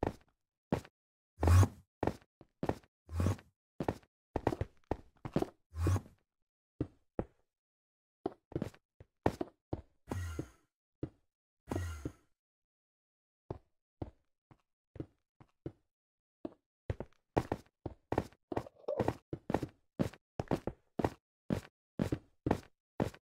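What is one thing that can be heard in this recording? Stone blocks thud and click as they are placed one after another in quick succession.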